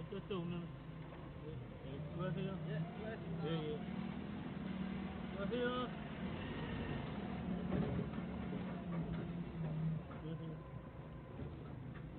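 A forklift engine rumbles steadily.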